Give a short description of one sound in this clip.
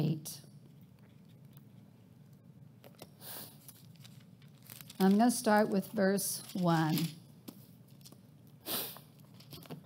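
Paper pages rustle as a woman turns them.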